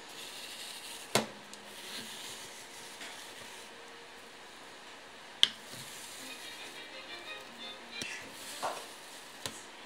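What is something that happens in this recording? A metal scoop scrapes through firm ice cream.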